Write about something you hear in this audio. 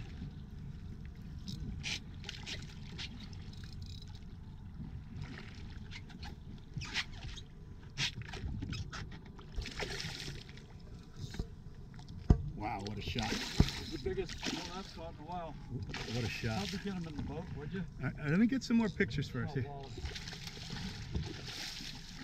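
Water laps and splashes against a boat's hull.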